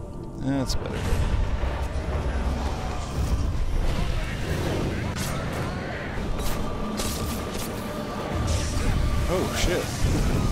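Explosions boom and roar with crackling flames.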